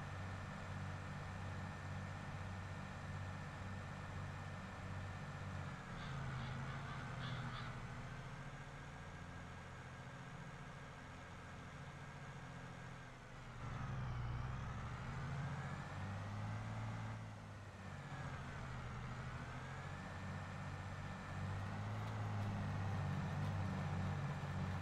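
A tractor engine rumbles steadily from inside the cab, rising and falling in pitch.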